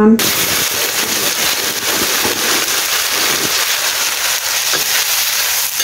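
A metal spatula scrapes against a wok.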